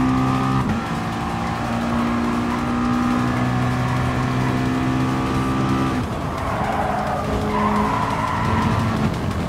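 A race car engine roars at high revs, shifting gears.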